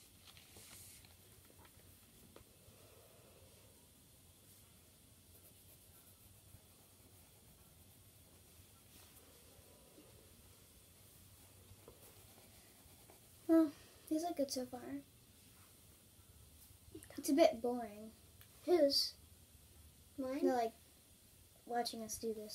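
Pencils scratch softly on paper.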